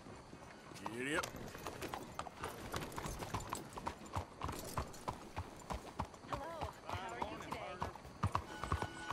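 A horse's hooves clop on cobblestones at a steady walk.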